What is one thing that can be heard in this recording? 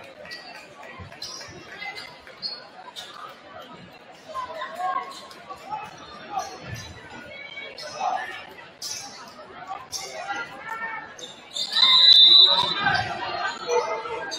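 A crowd murmurs and cheers in a large echoing gym.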